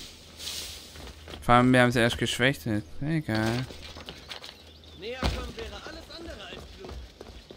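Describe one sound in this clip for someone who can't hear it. Footsteps run across stone.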